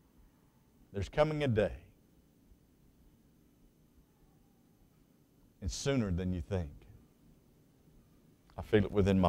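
A middle-aged man speaks animatedly into a microphone, in short bursts with pauses.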